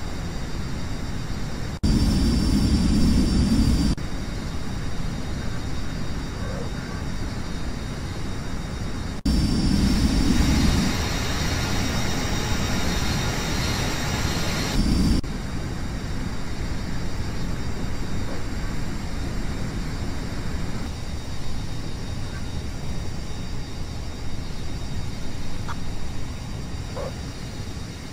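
A jet engine hums steadily, growing louder at times.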